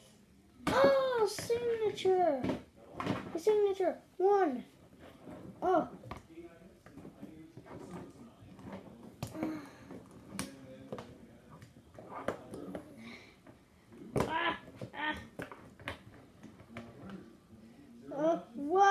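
Plastic toy figures knock and tap against a toy wrestling ring.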